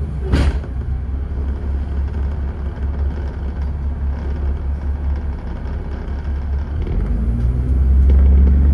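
Cars pass by on a wet road.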